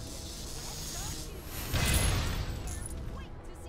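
An electric energy blast crackles and bursts loudly.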